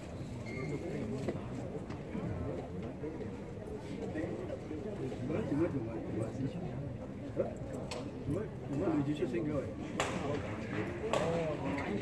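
A crowd of men and women murmur and chatter in a large echoing hall.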